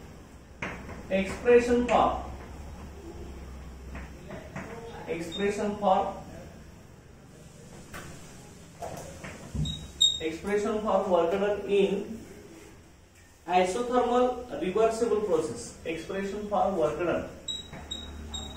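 A man lectures calmly, close by, pausing now and then.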